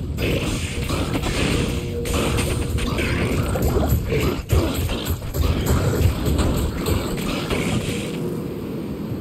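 Weapons clash and thud as monsters are struck in a fight.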